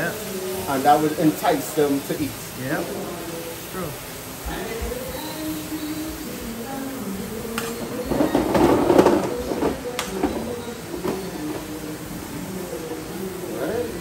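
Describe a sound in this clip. A metal spoon scrapes and clinks in a frying pan.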